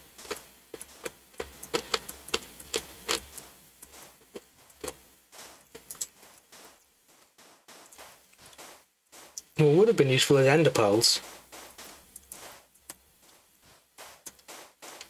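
Footsteps crunch on sand at a steady walking pace.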